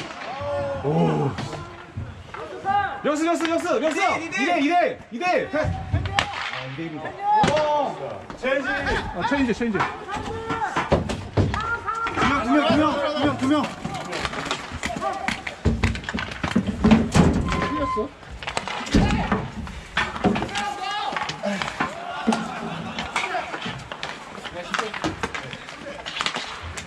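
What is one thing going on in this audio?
Skate wheels roll and scrape on the rink.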